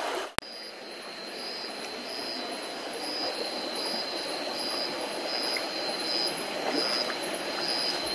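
Footsteps squelch and splash through shallow water and mud.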